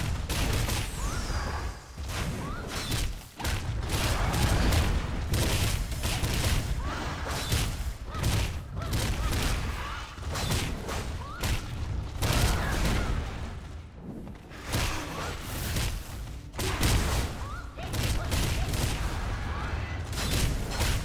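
A large monster growls and roars.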